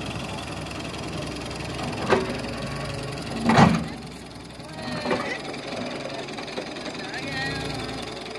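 An excavator engine rumbles steadily.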